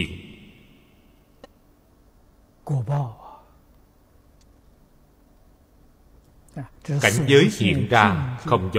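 An elderly man speaks calmly and slowly, with long pauses, close to a microphone.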